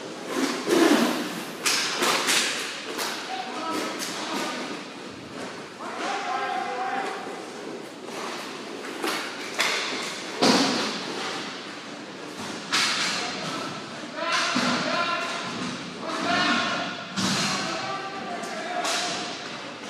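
Hockey sticks clack against a ball and the floor in a large echoing hall.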